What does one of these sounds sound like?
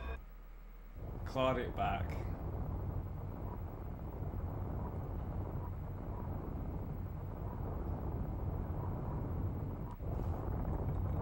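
A deep, steady rumble drones on.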